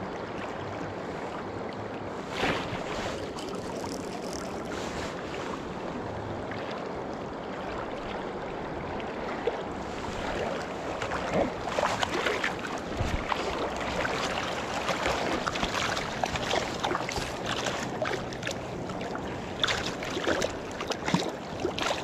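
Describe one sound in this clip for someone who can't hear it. A river rushes and gurgles steadily close by.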